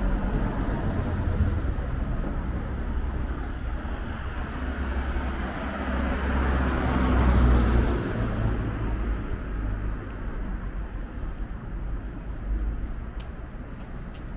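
Cars drive past on a street nearby.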